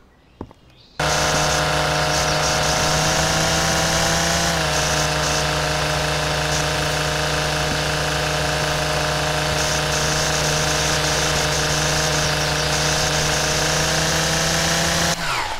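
A string trimmer engine whines loudly and steadily.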